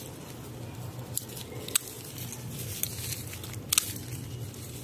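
Leaves rustle and crackle as a hand brushes through a plant.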